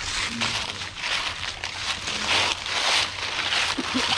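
A plastic bottle crinkles in a hand.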